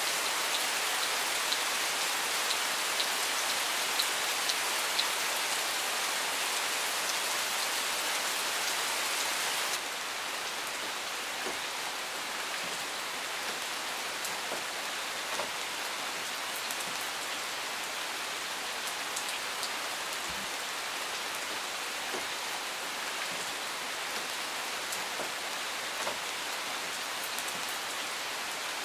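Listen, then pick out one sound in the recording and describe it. Steady rain patters on leaves and gravel outdoors.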